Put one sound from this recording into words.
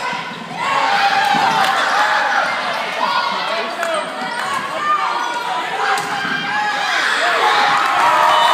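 Players' sneakers squeak sharply on the court.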